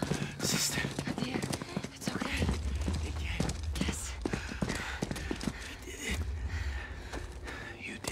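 A young man speaks in a strained, breathless voice up close.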